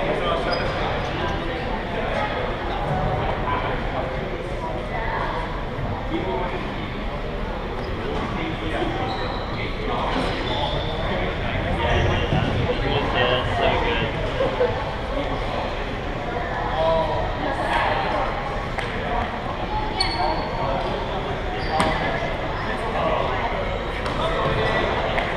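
Many voices of young people chatter in a large echoing hall.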